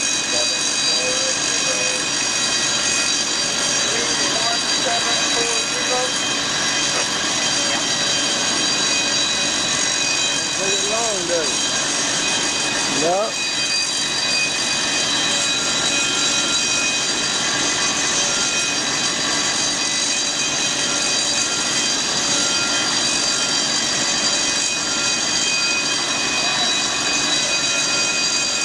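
Industrial machinery hums and whines steadily nearby.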